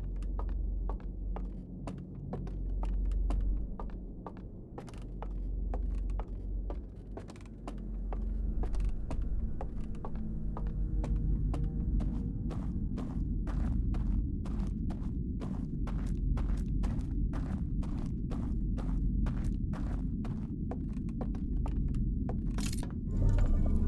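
Footsteps thud steadily on wooden stairs and floorboards.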